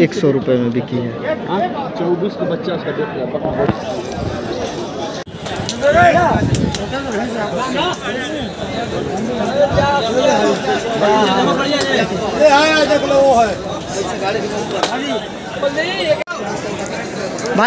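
Men talk close by, with animation.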